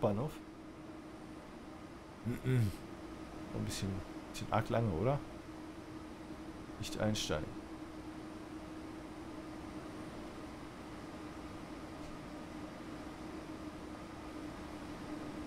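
A high-speed train rolls slowly along a platform.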